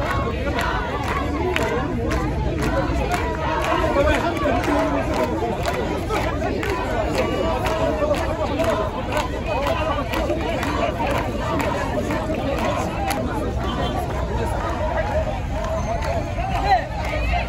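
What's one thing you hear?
A crowd of men and women talks and shouts loudly outdoors.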